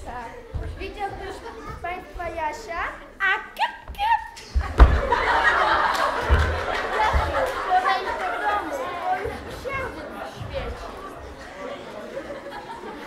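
Young voices shout and chatter on a stage in a large hall.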